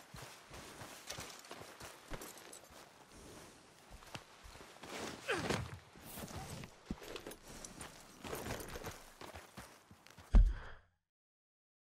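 A horse walks through brush and grass.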